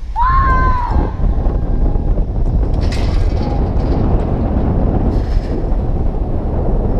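Wind buffets the microphone high up outdoors.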